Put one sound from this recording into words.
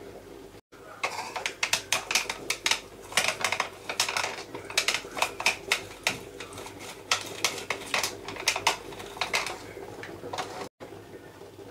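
A lime squeaks and grinds against a plastic citrus juicer.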